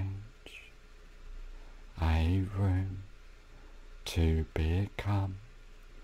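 A young man speaks calmly and close to a microphone, in short phrases.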